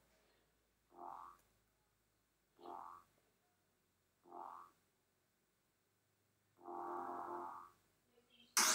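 Short electronic chimes ring out one after another.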